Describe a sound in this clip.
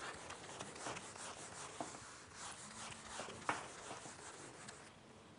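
A marker squeaks and scratches on a whiteboard in short strokes.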